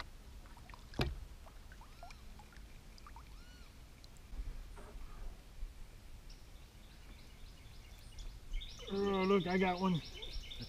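A paddle dips and splashes softly in calm water.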